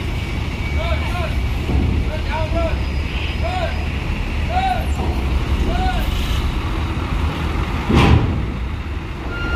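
A large bus engine rumbles steadily as the bus drives slowly nearby.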